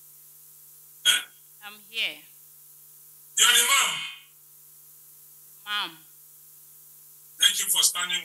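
A middle-aged woman speaks into a microphone close by, in short bursts.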